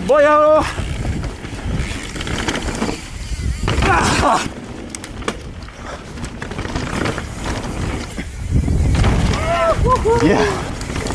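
A bicycle's frame and chain rattle over bumps.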